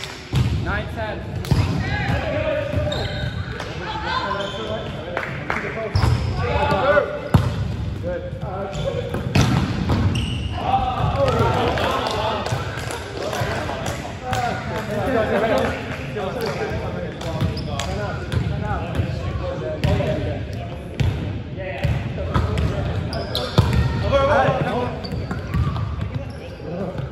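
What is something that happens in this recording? Young men call out and shout to each other in a large echoing hall.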